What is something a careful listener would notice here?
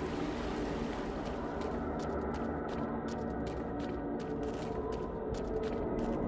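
Quick footsteps run over rocky ground.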